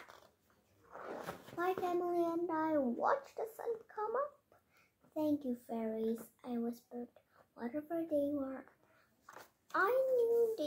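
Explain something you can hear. A young girl reads aloud close by, in a sing-song voice.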